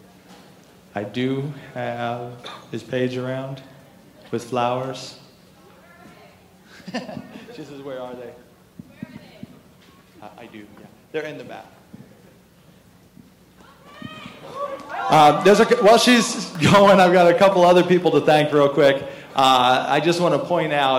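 A man speaks in a large echoing hall.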